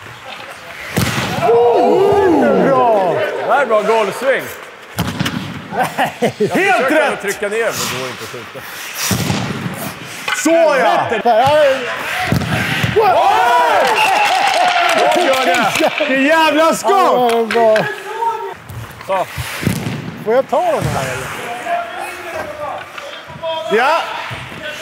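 Hockey sticks slap pucks with sharp cracks.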